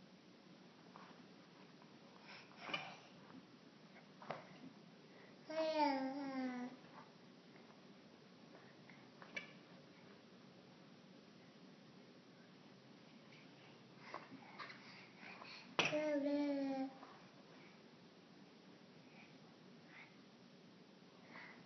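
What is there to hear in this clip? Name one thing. A toddler bangs a toy on a plastic tray.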